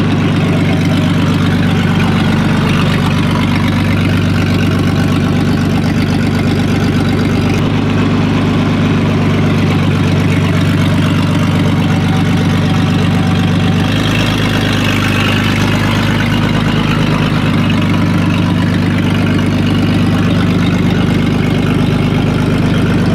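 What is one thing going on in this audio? A vintage straight-six engine idles with a deep, even burble.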